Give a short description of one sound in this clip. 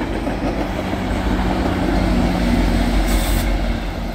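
A diesel locomotive engine rumbles deeply as it passes close by.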